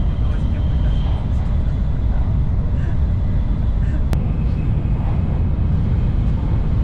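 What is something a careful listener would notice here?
A high-speed train rumbles steadily, heard from inside the carriage.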